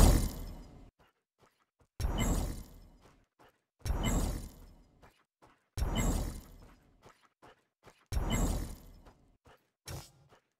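Game menu sounds chime sharply as options are selected.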